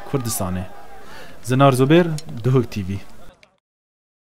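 A man speaks loudly outdoors.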